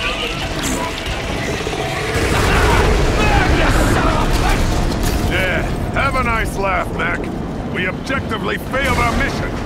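Fire roars with a deep, steady rumble.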